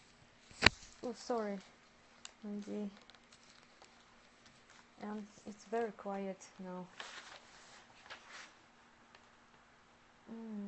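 A young woman talks calmly and close by, in short bursts.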